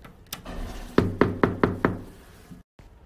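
Knuckles knock several times on a door.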